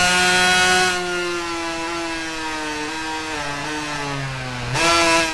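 A two-stroke racing motorcycle engine blips and drops as it downshifts under braking.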